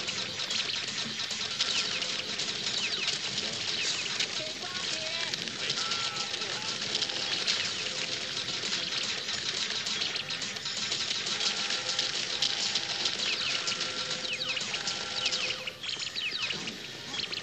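Video game music and sound effects play busily through a television speaker.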